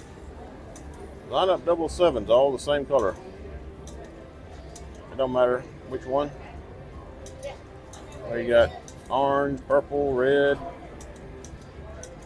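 A finger presses a button on a slot machine with a click.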